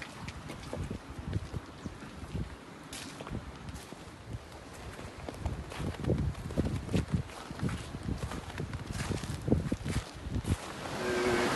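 Footsteps crunch on snow and gravel outdoors.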